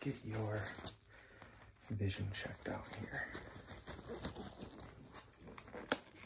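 A rubber glove rustles and snaps as it is pulled on.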